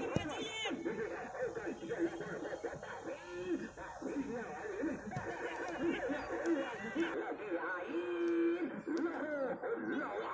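A crowd of young men shouts and cheers outdoors nearby.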